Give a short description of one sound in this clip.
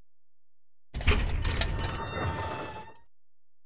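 A door creaks open slowly.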